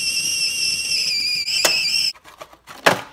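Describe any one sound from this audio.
A kettle whistles loudly and steadily.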